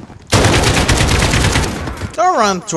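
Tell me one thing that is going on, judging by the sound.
Rapid automatic gunfire rattles loudly.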